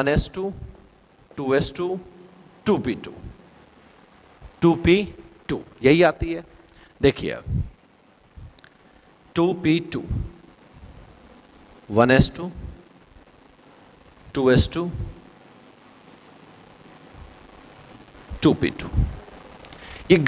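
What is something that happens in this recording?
A man speaks calmly and clearly into a close microphone, explaining in short bursts with pauses.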